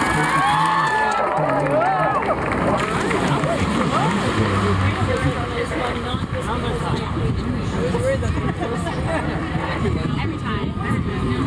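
A crowd of people chatter and call out outdoors.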